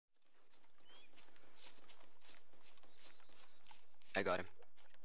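Footsteps swish steadily through grass and undergrowth.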